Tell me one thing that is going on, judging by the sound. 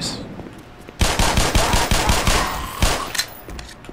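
A pistol fires a rapid burst of loud shots.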